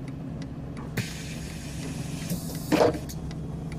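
Air hisses loudly as bus doors start to close.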